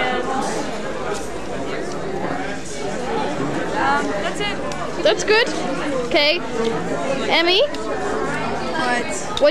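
Many people chatter in a crowded room.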